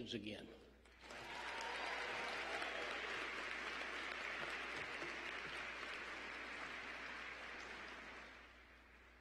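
A crowd applauds loudly and steadily, then fades.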